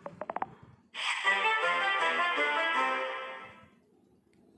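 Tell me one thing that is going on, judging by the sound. A short game jingle plays for a failed level.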